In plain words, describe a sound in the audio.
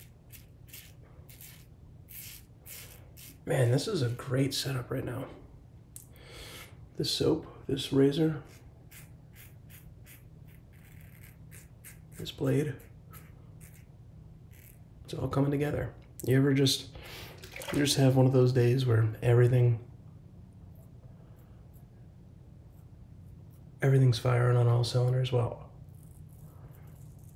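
A razor scrapes across stubble in short, quick strokes.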